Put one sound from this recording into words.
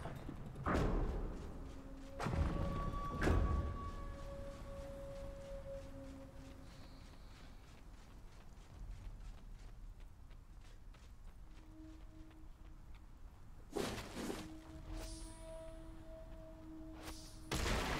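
Sharp whooshing hits and impacts sound in bursts.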